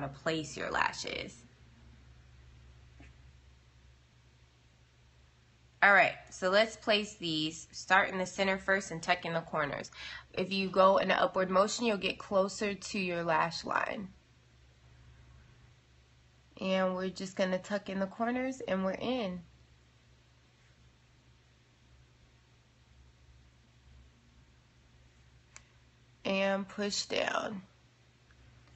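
A young woman talks casually and close to a microphone, in short bursts with pauses.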